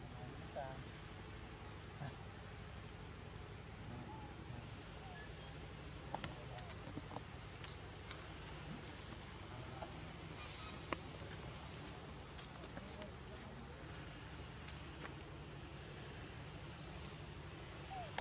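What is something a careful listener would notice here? Young monkeys squeak softly now and then.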